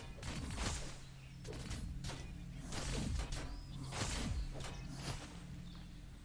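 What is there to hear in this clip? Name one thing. Game weapons fire and blast in quick bursts.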